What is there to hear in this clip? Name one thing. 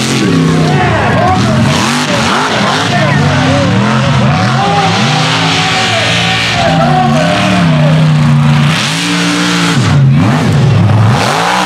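A loud off-road truck engine roars and revs up and down, close by.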